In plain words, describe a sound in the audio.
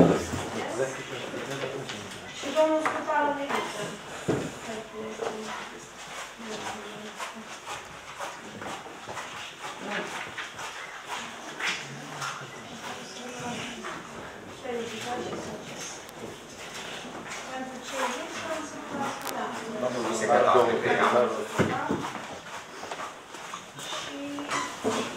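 People murmur and talk in a room with a slight echo.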